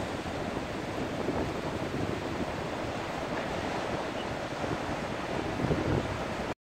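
Ocean waves break and wash ashore with a steady rumbling roar.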